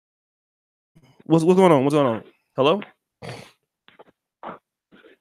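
A man speaks slowly into a close microphone.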